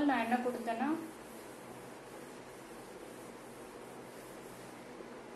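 A felt eraser rubs across a whiteboard.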